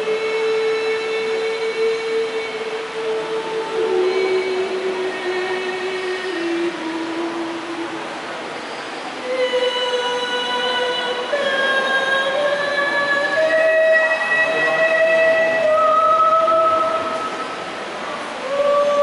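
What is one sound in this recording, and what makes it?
An older woman sings close by.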